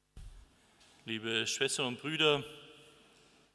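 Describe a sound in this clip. A middle-aged man speaks calmly through a microphone in an echoing hall.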